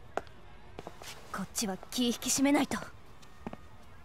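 A young woman speaks firmly.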